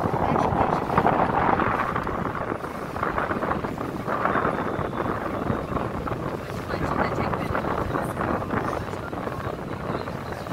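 Water rushes and splashes along the side of a moving boat.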